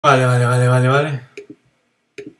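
A young man lets out a loud, drawn-out vocal sound close to a microphone.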